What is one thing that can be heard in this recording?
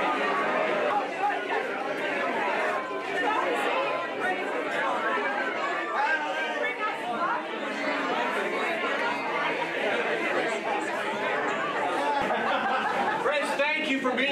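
A crowd of men and women chatter and greet each other in a lively hubbub.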